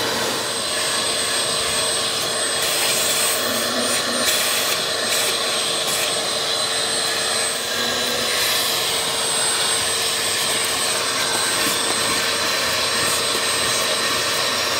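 A shop vacuum runs steadily, its nozzle sucking debris from car carpet.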